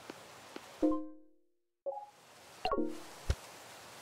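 Short game menu chimes sound.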